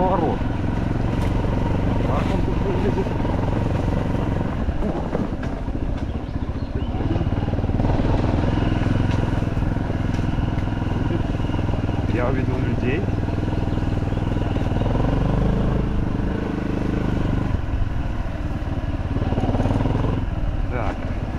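Tall grass and branches brush and swish against a moving bike.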